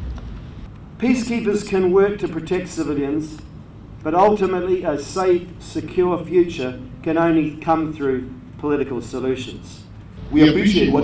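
A middle-aged man delivers a formal speech into microphones.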